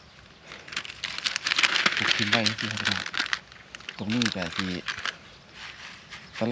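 Dry soil crumbles and rustles between a man's hands.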